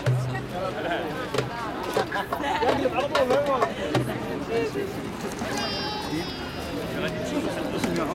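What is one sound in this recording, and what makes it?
Hand drums are tapped in rhythm.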